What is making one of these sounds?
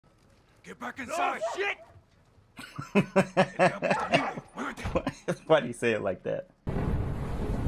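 A young man speaks with animation and laughs into a close microphone.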